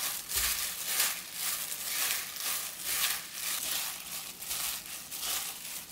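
A plastic glove crinkles and rustles close by.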